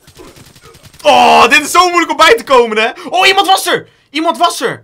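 A young man shouts in excitement.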